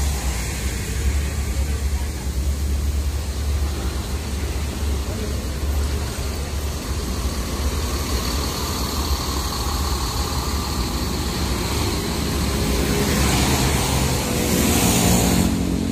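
A bus engine idles with a deep, steady rumble close by.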